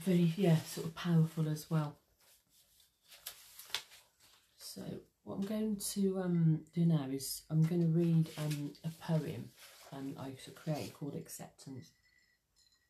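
A middle-aged woman speaks calmly and close up.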